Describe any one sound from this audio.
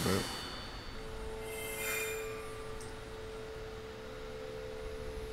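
Soft game music hums steadily.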